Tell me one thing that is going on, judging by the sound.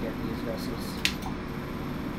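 A handheld device clicks once.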